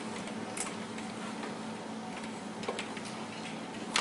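Papers rustle and tap on a lectern.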